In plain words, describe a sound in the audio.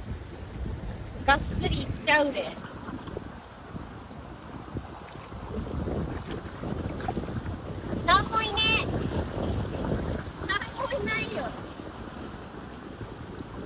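Water splashes as feet wade and a net sweeps through shallow water.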